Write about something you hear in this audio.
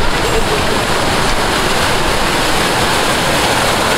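A bus engine idles nearby.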